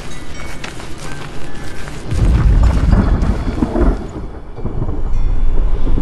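A fire roars and crackles nearby.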